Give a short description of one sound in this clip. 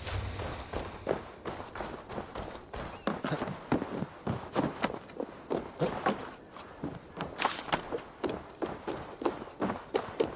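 Footsteps thud on wooden planks and roof shingles.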